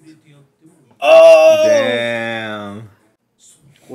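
A man shouts excitedly into a microphone.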